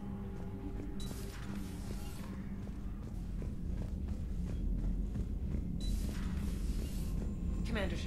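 A sliding door opens with a hissing whoosh.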